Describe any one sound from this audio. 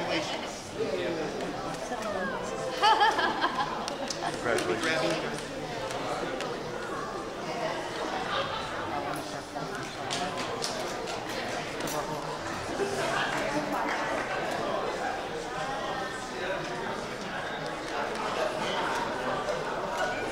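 A crowd of guests cheers and chatters.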